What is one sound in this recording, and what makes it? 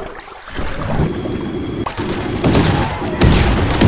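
Small weapons clash and clatter in a fast fight.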